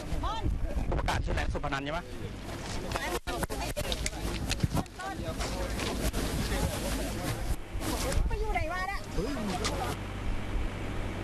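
A crowd of men talks and calls out over one another at close range.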